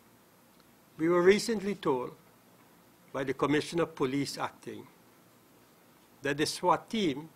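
An elderly man reads out a statement calmly into microphones, with pauses.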